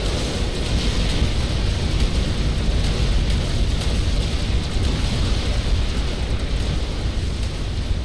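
Weapons fire in rapid bursts in a video game battle.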